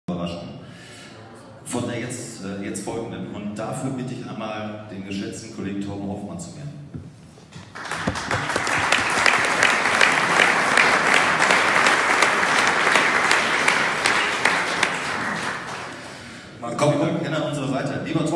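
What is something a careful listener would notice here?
A man speaks into a microphone over loudspeakers in an echoing hall.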